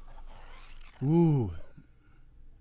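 A large creature lets out a rising and falling screech.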